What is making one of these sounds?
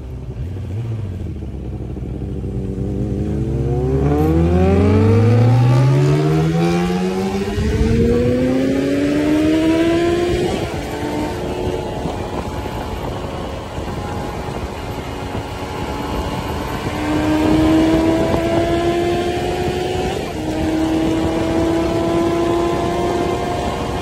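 A motorcycle engine revs up through the gears as the bike accelerates.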